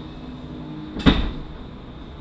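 Metal parts clink sharply as they are handled.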